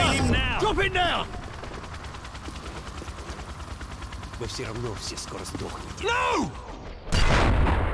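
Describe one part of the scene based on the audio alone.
A helicopter's rotor thumps loudly nearby.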